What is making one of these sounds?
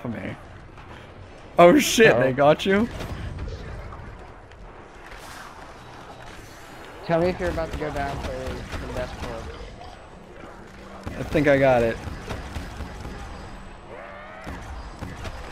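A futuristic gun fires repeated sharp zaps.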